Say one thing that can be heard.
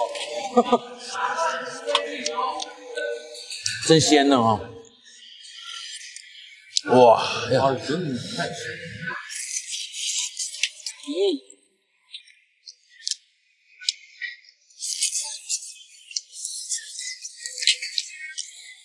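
Shells clink and rattle as two men eat.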